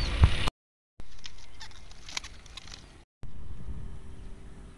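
Fish flap and splash in a container.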